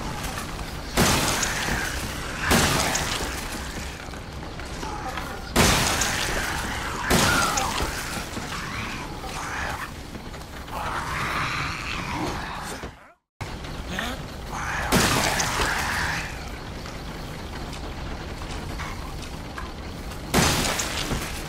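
A pistol fires loud single shots that ring out.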